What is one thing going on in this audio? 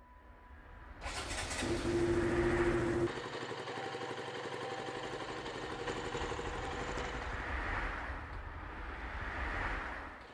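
A motorcycle engine starts and revs loudly, then rumbles as the motorcycle rides away.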